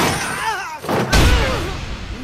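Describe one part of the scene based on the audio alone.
A heavy punch lands with a thud.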